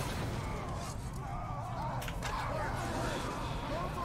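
Creatures growl and snarl.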